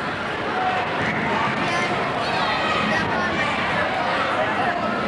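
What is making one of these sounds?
A crowd of children and adults chatters in a large echoing gym.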